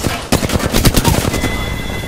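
Electric zaps crackle from a weapon.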